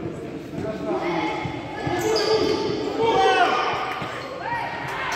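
Young children cheer and shout excitedly.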